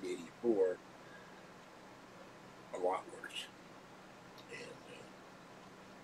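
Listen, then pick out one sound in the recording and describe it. An elderly man speaks in short bursts, close to a microphone.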